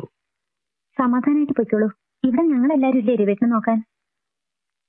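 A woman speaks nearby in a tense voice.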